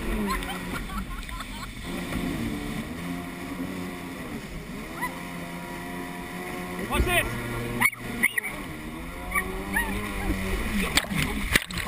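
Water splashes and sprays around a jet ski.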